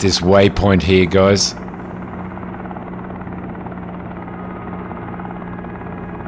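A helicopter's engine and rotor hum steadily.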